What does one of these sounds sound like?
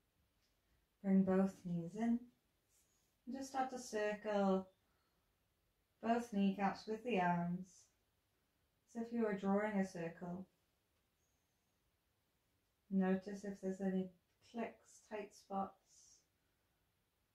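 A woman speaks calmly in short phrases nearby.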